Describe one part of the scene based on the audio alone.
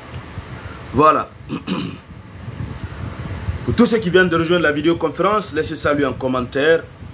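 A man speaks close to the microphone with animation.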